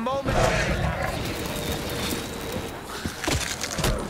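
Electricity crackles and zaps.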